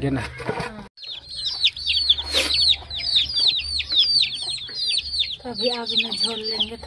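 Chicks chirp rapidly and repeatedly nearby.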